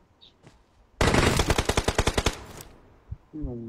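Rapid gunfire rattles in a loud burst.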